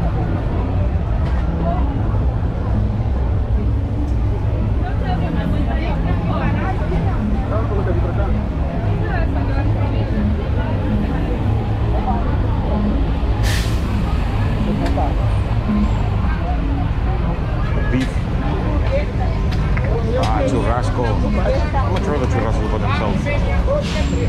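A crowd chatters outdoors all around.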